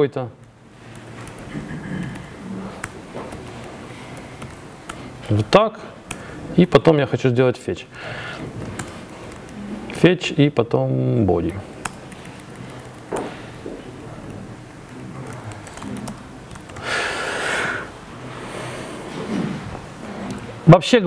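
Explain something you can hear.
Keys clack as a man types on a laptop keyboard.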